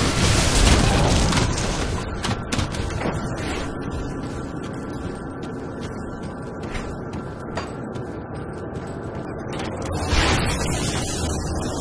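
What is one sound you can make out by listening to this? Magic blasts and fiery bursts crackle and boom in a fight.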